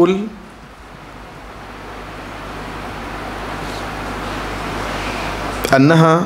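A middle-aged man reads aloud calmly into a microphone, with pauses.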